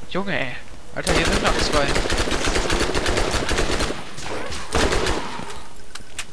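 A gun fires rapid bursts of shots.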